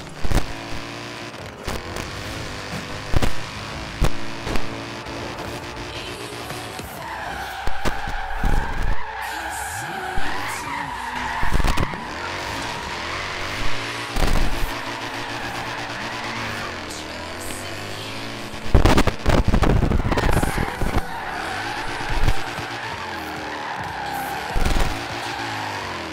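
A car engine revs hard through the gears.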